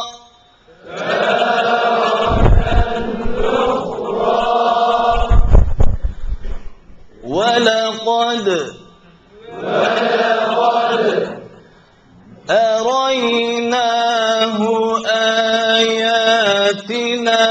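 A man chants in a long, sustained melodic voice through a microphone, with echo.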